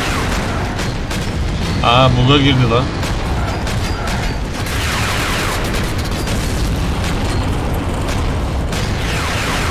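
A vehicle's gun fires in bursts.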